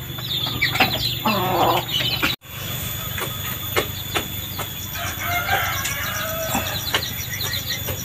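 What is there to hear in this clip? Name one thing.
A hen clucks softly.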